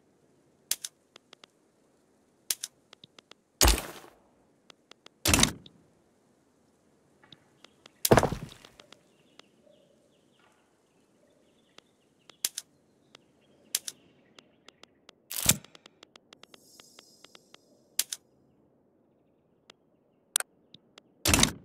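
Game menu clicks and whooshes sound now and then.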